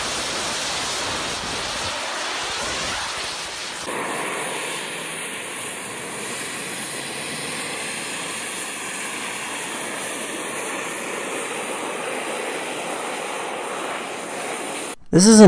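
Small jet engines roar loudly and steadily.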